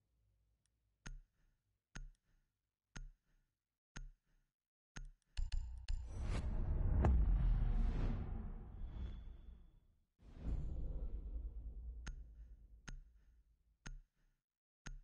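A countdown timer ticks once a second.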